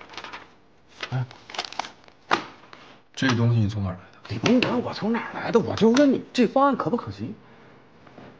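A young man speaks sharply and with agitation nearby.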